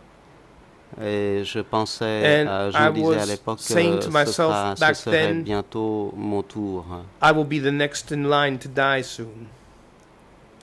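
An elderly man speaks slowly through a microphone.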